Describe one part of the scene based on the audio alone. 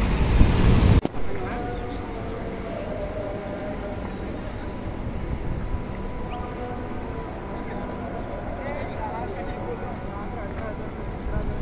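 Footsteps shuffle on pavement outdoors.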